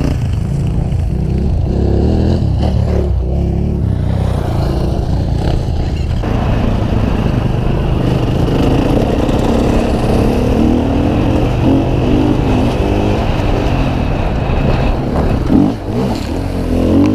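A dirt bike engine revs and roars up close.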